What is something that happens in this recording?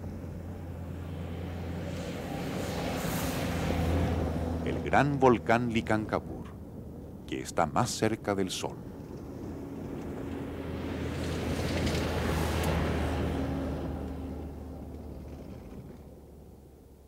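A car engine hums as a vehicle drives past and fades away.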